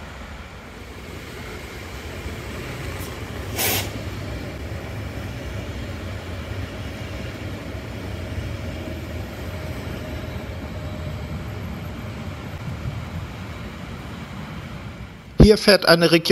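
A train rumbles past on the tracks nearby and slowly fades into the distance.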